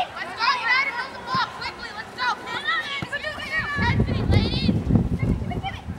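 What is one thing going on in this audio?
A soccer ball is kicked along grass with dull thuds.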